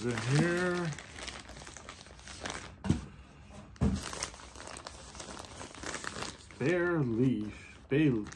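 A paper envelope rustles in a man's hands.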